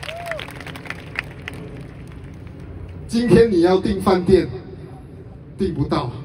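A man speaks steadily through a microphone over loudspeakers in a large echoing hall.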